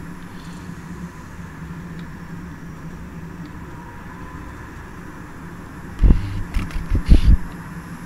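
Train wheels rumble and click over the rails.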